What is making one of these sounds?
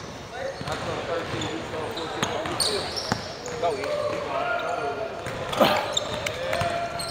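Young men call out to each other during play.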